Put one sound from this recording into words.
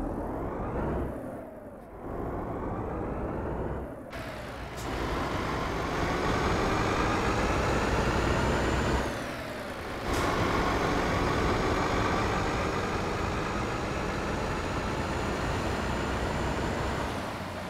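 A heavy truck engine rumbles and drones steadily.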